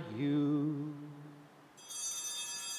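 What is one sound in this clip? A man sings a short phrase into a microphone.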